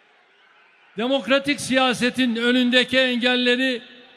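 A large crowd chants in unison in a big echoing hall.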